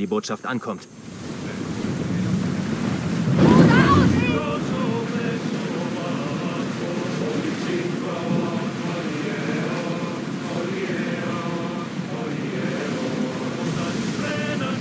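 Waves rush and splash against a ship's hull.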